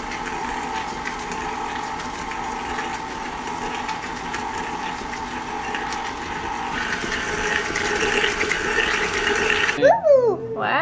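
A stand mixer whirs steadily as it beats dough.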